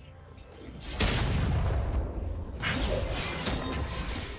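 Magic spell effects whoosh and crackle in a fight.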